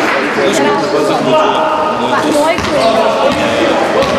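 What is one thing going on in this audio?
A ball bounces on the floor.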